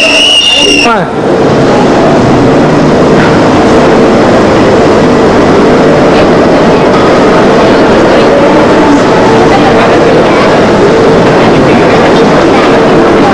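A crowd murmurs in the open air.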